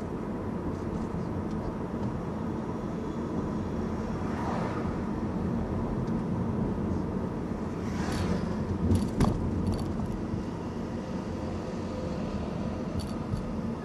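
Tyres roll over a city road.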